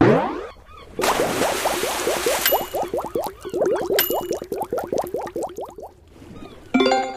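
A bright jingle plays as a prize comes up.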